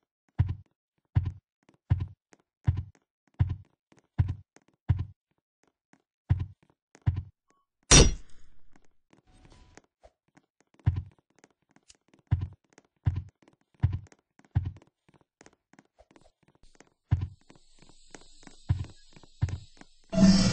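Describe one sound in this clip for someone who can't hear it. Footsteps thud at a steady running pace.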